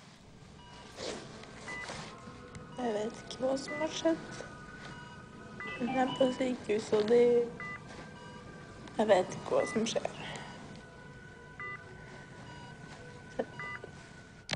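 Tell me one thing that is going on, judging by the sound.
A young woman speaks weakly and haltingly, close by.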